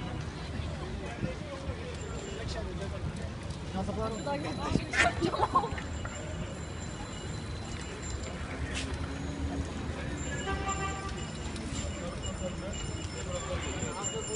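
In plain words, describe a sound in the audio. Bicycles roll by on pavement outdoors.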